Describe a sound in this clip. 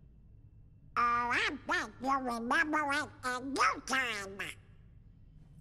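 A cartoon duck speaks in a quacking, squawky voice.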